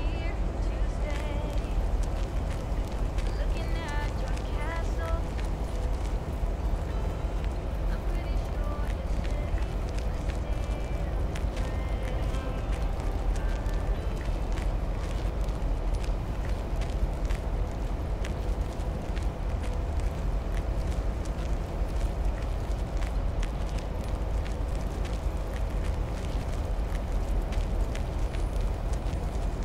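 Footsteps swish through grass and tap on pavement at a steady walking pace.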